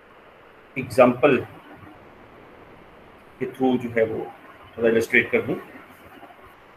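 A young man speaks calmly in short phrases through a computer microphone.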